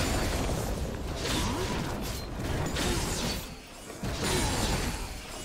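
Fighting sounds of spells whooshing and blades clashing ring out in quick bursts.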